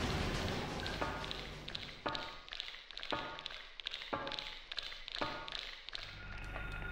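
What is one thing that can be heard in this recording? Feet clang on metal ladder rungs in a steady rhythm.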